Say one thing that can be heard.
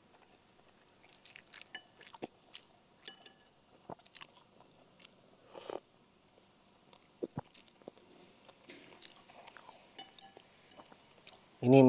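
A spoon clinks and scrapes against a bowl.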